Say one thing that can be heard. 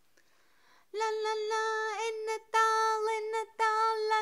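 A young girl's high-pitched voice calls out loudly and close by.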